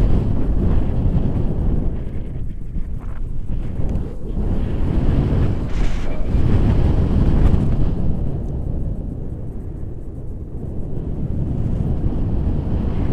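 Wind roars and buffets loudly against a microphone outdoors.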